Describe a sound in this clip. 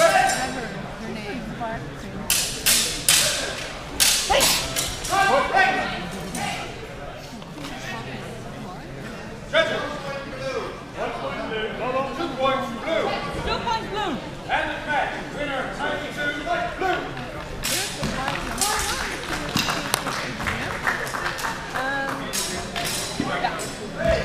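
Several men talk in a large echoing hall.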